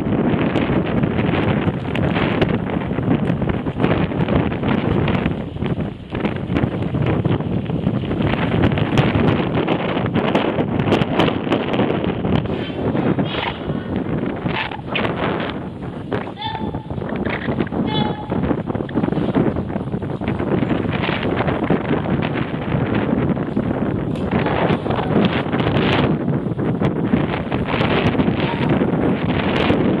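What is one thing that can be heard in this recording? Wind rushes loudly past a moving microphone outdoors.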